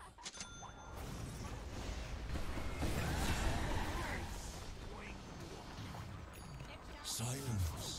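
Spell blasts and clashes of battle crackle and boom in a game.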